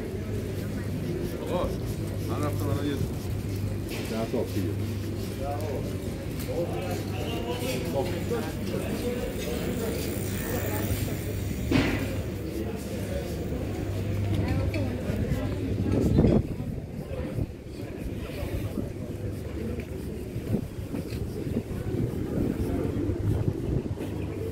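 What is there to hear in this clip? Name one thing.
Wind blows across an outdoor microphone.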